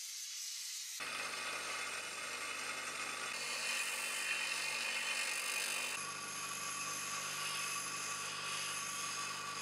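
A bench grinder whines as metal is ground against its wheel.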